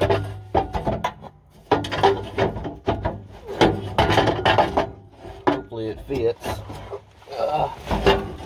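Metal parts clank and scrape under a vehicle.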